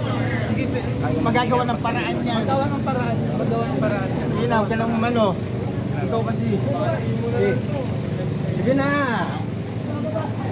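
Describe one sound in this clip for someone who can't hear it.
A woman talks excitedly nearby.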